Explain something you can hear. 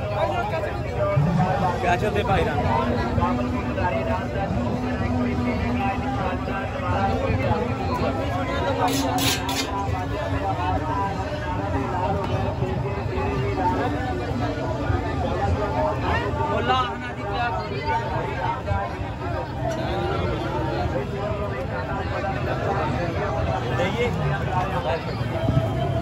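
Voices of a busy crowd chatter all around outdoors.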